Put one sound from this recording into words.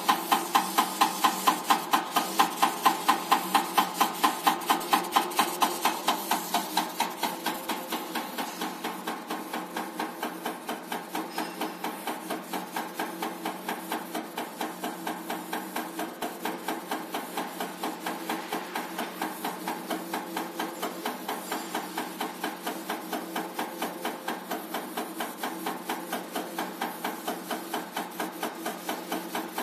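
A test machine clatters with rapid, even ticking, louder at first and then a little quieter.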